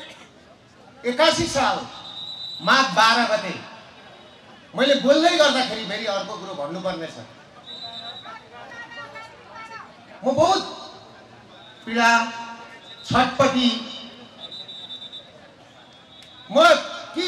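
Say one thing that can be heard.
A middle-aged man speaks forcefully into a microphone over loudspeakers, with pauses between phrases.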